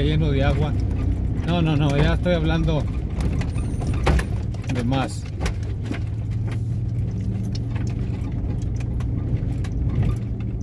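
Tyres rumble over a rough road.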